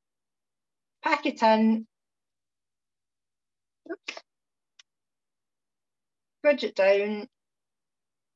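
A woman speaks calmly and briefly, close by, in short pauses.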